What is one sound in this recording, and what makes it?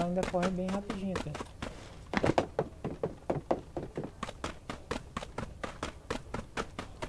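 Quick footsteps run across hard ground.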